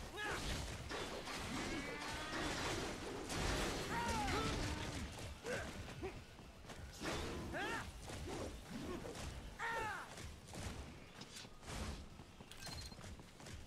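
Metal blades clash and clang in a fierce fight.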